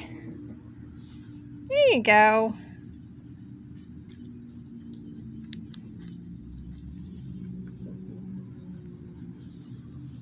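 A small rabbit nibbles softly on a piece of carrot.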